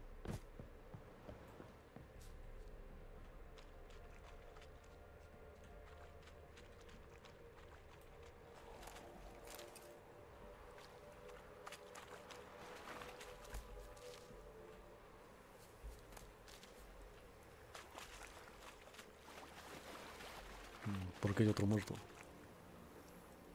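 Footsteps tread on wooden boards and grass.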